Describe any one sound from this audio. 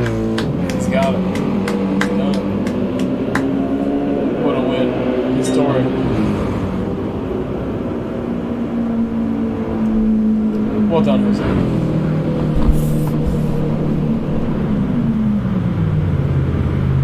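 Racing car engines roar and rev up and down as gears shift.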